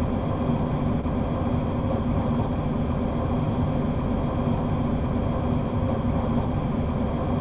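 Wheels clatter on rails.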